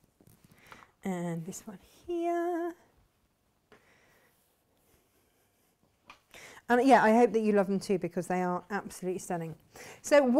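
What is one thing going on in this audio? A woman talks calmly and closely into a microphone.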